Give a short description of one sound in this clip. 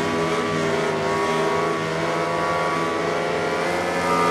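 Several motorcycle engines roar past nearby.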